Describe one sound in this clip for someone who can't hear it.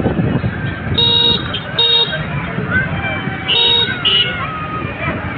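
Vehicle horns beep in short blasts.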